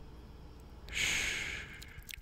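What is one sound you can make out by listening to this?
A man softly shushes close to a microphone.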